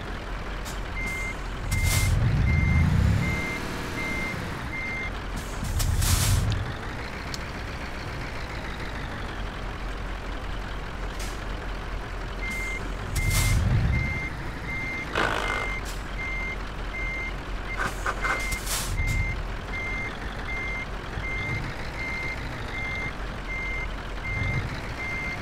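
A truck's reversing alarm beeps at an even pace.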